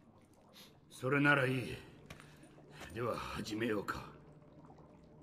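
An elderly man speaks calmly and quietly.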